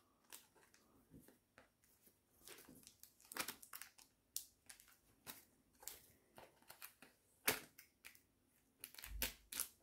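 Cardboard rustles and scrapes as it is handled.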